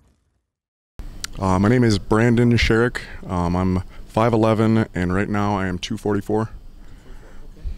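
A man talks calmly into a handheld microphone, close by.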